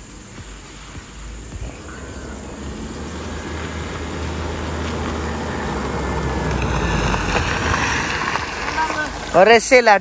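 A car engine grows louder as the car approaches on a road.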